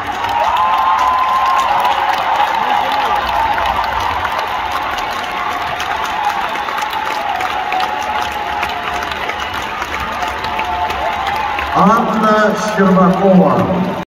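A large crowd applauds in an echoing arena.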